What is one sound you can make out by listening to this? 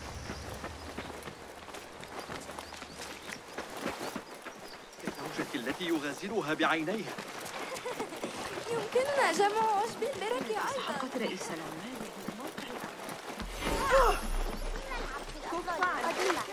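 Footsteps run quickly over stone and dirt.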